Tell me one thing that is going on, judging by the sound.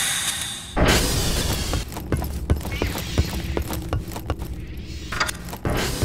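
Footsteps clatter quickly on a metal grate.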